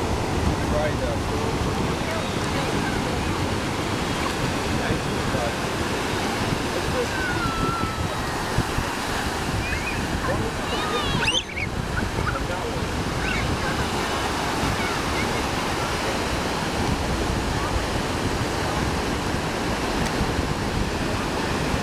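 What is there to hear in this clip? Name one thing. Children splash through shallow water.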